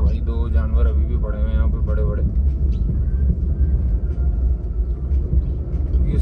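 A car engine rumbles steadily from inside the car while driving.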